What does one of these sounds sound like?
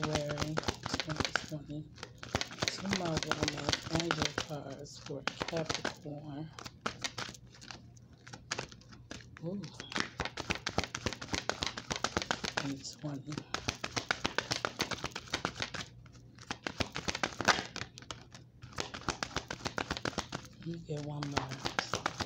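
Playing cards shuffle with rapid, crisp riffling and flicking.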